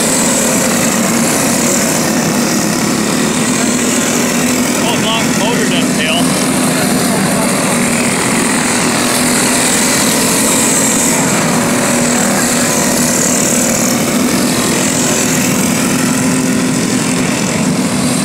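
Small kart engines buzz and whine loudly as they race around a dirt track.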